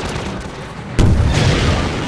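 A rocket launches with a loud whoosh and blast.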